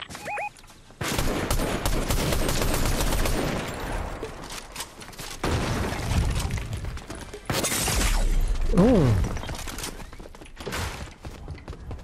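Game building pieces clatter and snap into place in quick bursts.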